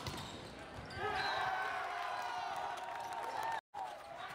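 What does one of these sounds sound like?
Young men shout and cheer in a large echoing hall.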